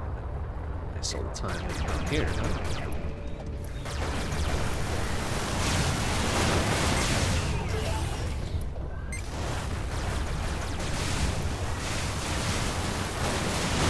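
Spaceship lasers fire in rapid bursts.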